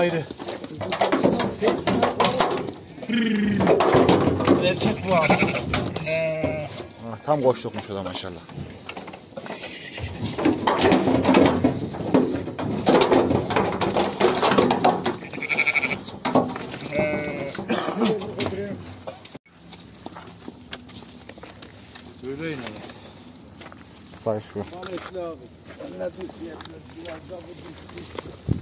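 Sheep bleat loudly and often, close by.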